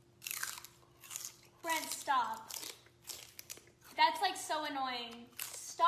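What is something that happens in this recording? A young man crunches on a celery stick.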